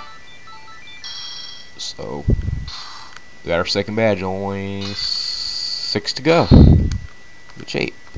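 Electronic game sound effects chime, whoosh and swell from a television speaker.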